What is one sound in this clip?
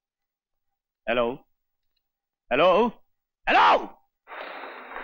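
A young man speaks into a telephone with urgency.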